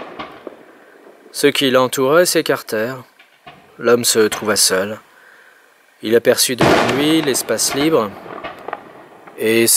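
Fireworks fizz and crackle outdoors.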